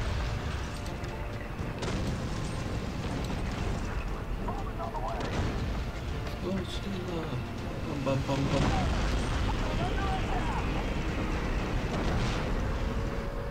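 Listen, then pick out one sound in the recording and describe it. Heavy engines rumble low and steadily.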